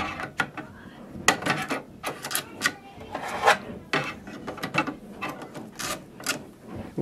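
Plastic ink cartridges click and snap into place.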